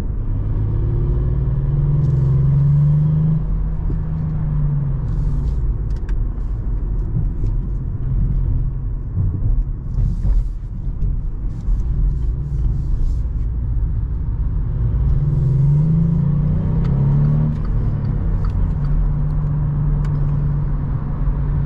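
A car engine hums from inside the cabin, rising and falling in pitch as it revs and shifts gears.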